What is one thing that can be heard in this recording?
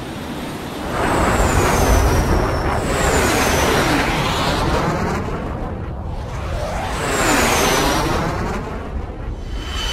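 Jet planes roar loudly as they fly past.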